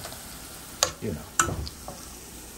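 Metal tongs click against a pan.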